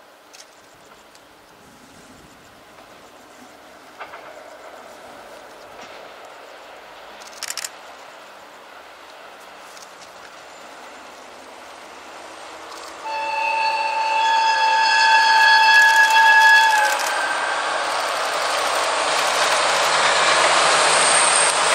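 A diesel locomotive engine rumbles as a train approaches.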